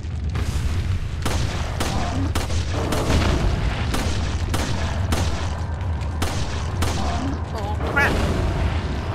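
A monster roars and growls.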